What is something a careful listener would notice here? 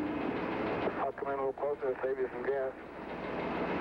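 A man speaks briefly at a distance.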